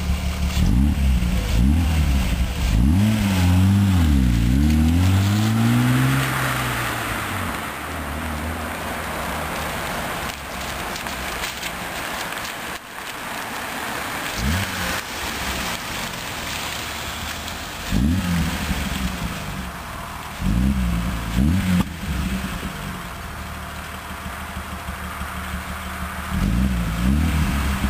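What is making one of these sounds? A car engine revs hard up and down close by.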